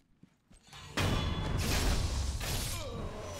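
Swords clash loudly in a close fight.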